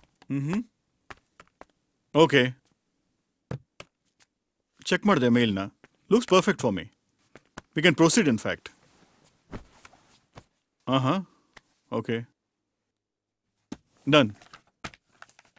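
A man speaks nearby in short, calm phrases.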